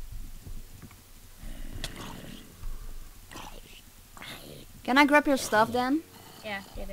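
A zombie groans low and hoarse.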